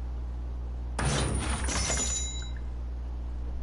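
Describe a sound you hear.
A bright chiming purchase sound rings out.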